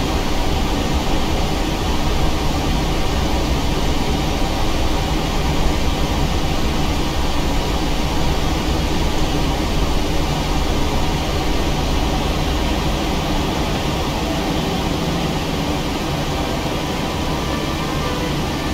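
Jet engines hum steadily at low power.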